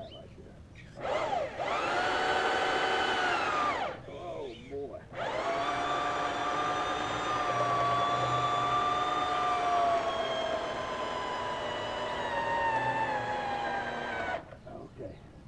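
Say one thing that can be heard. A small boat motor starts and runs with a steady hum, then cuts out.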